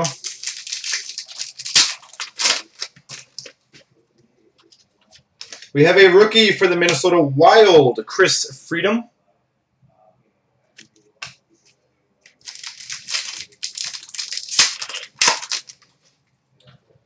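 A foil card wrapper crinkles and tears as it is opened.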